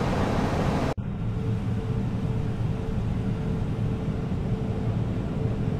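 Jet engines drone steadily, heard from the cabin of an airliner over the wing.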